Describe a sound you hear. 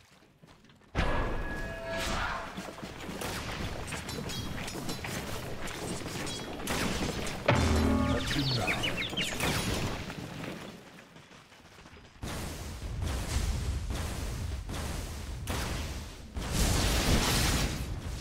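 Swords clash and spells crackle in a busy fantasy battle.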